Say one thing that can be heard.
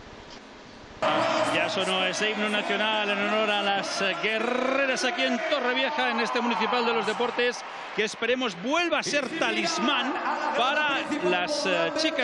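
A large crowd sings loudly in an echoing arena.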